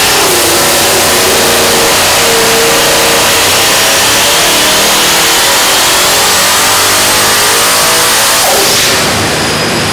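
A supercharged engine roars loudly at high revs, its whine climbing steadily.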